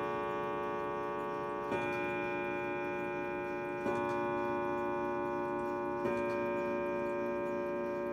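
A mantel clock chimes slowly, each ringing note lingering and overlapping the next.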